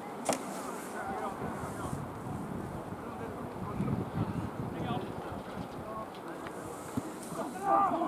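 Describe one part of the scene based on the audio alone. Young men shout to each other across an open field, distant.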